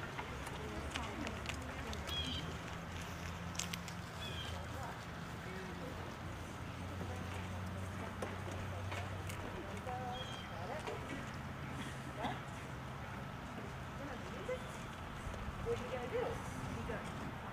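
A school band plays brass and woodwind instruments softly.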